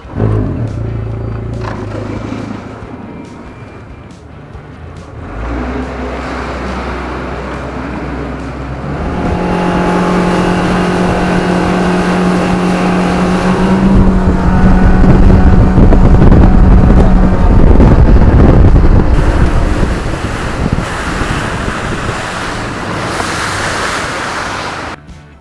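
A boat engine idles low, then roars loudly as it speeds up.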